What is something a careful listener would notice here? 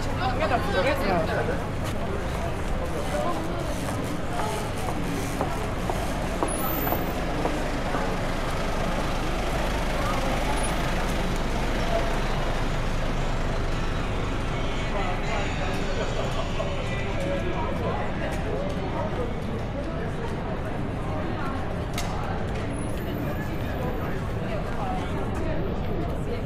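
A crowd of people talk and murmur all around outdoors.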